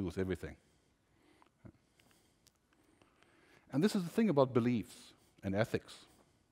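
A middle-aged man speaks with animation through a headset microphone.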